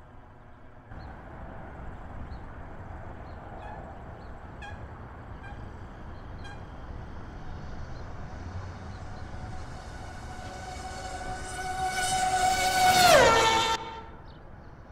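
A racing car engine roars louder as it approaches, then drops in pitch as it passes close by.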